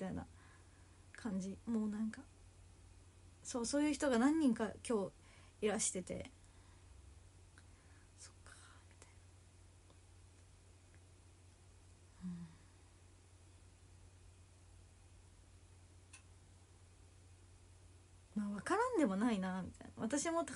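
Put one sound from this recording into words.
A young woman speaks softly and hesitantly close to a microphone, with long pauses.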